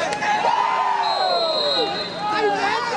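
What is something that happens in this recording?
A referee's whistle blows once, briefly.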